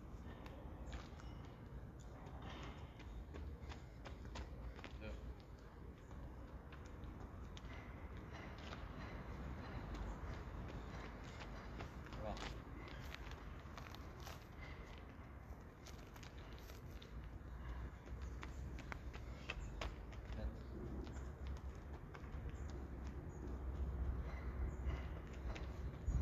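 Footsteps run on concrete outdoors.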